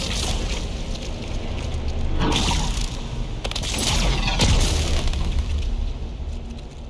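Electricity crackles and bursts in loud surges.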